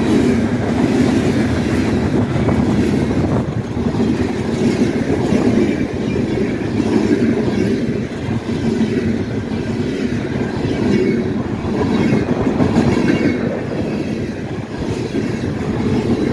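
A freight train rumbles past close by, loud and steady.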